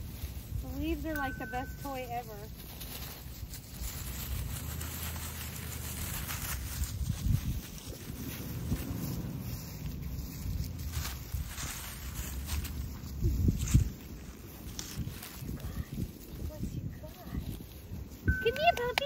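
Dry leaves rustle and crunch under footsteps and playing puppies.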